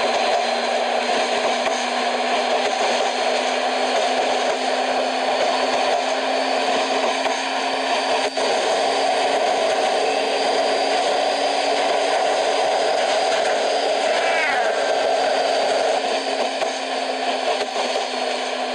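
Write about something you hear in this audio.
An electric train hums steadily as it runs along the rails.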